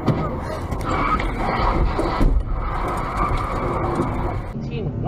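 Water splashes hard against a car's windshield.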